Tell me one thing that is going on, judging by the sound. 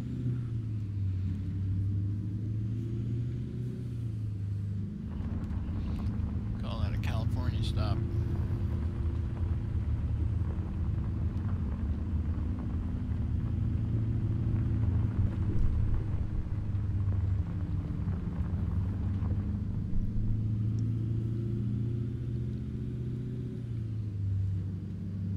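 A truck's diesel engine drones steadily, rising and falling in pitch as it drives.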